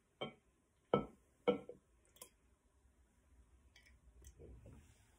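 Milk glugs and splashes as it pours from a jug into a glass jar.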